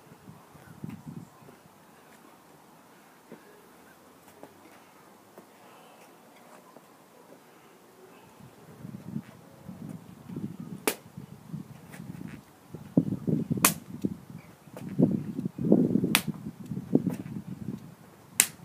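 A cotton shirt swishes with fast punches and arm swings.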